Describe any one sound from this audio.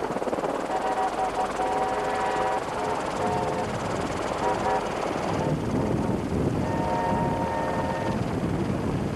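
A train horn sounds in the distance.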